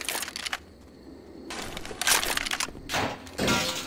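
A gun rattles and clicks as it is handled.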